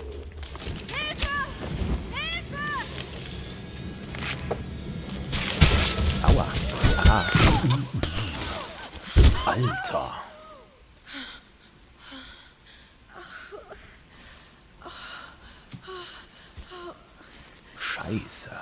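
A young woman gasps and grunts in pain.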